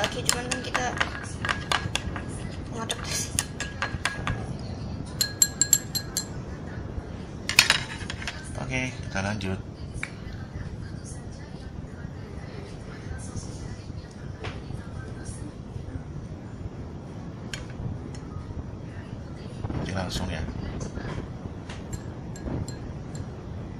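Chopsticks clink against a glass bowl.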